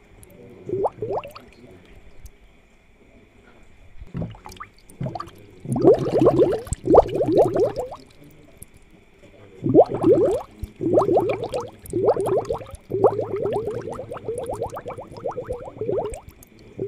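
Water bubbles softly in an aquarium.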